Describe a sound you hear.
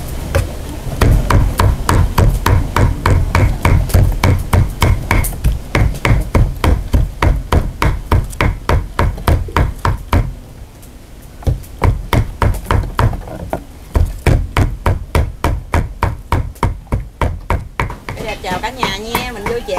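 Knives chop rapidly and steadily on a cutting board.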